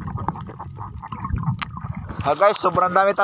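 Water rumbles and gurgles underwater.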